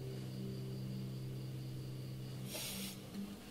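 An acoustic guitar chord rings out and slowly fades.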